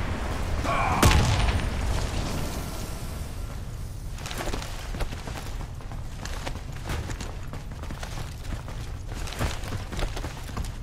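Heavy boots thud on a hard floor.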